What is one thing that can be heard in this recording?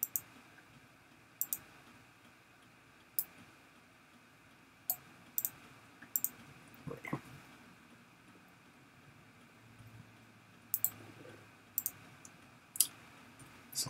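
Short, sharp clicks sound now and then as items are moved.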